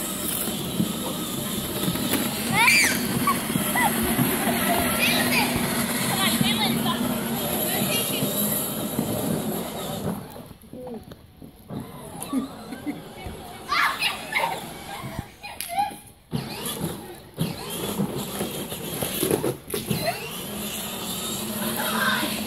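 A small ride-on mower engine hums and drones outdoors.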